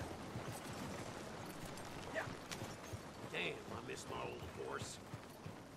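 Wagon wheels creak and rumble past.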